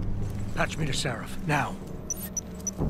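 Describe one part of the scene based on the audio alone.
A man speaks urgently.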